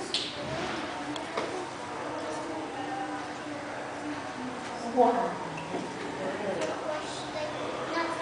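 Young children chatter and call out in a large echoing hall.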